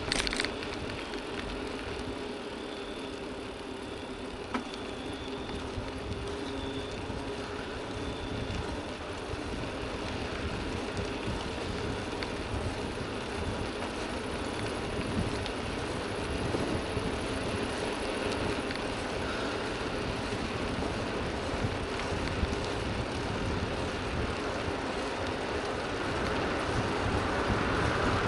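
Wind rushes steadily past a moving bicycle, growing louder toward the end.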